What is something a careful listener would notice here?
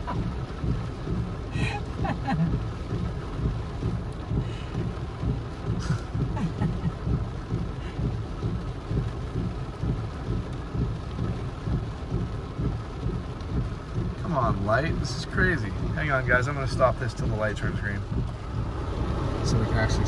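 Rain patters steadily on a car windshield.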